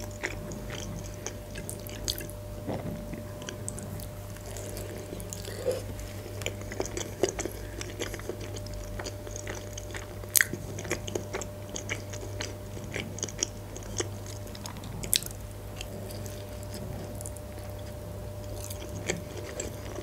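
A young woman chews crunchy food with wet sounds, close to a microphone.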